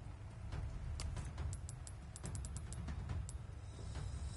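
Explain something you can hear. Short clicks tick in quick succession as a menu is scrolled.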